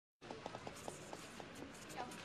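Fingers tap quickly on a phone's touchscreen.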